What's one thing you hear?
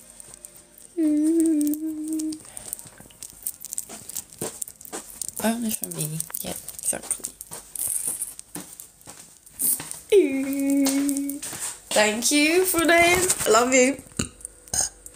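A young woman sings in short phrases close to a phone microphone.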